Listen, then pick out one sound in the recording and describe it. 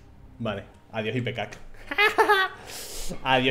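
A young man laughs loudly into a close microphone.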